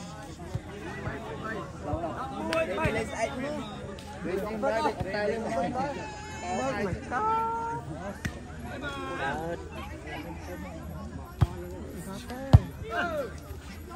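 A crowd of young men talks and shouts outdoors.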